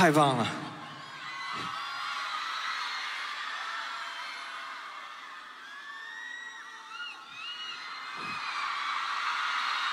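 A large crowd cheers and screams in a big hall.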